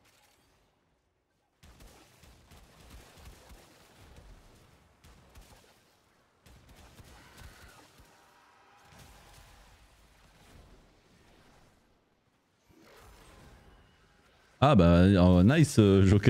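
Gunfire and blasts sound from a game.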